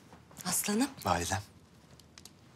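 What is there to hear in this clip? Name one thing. A man answers softly, close by.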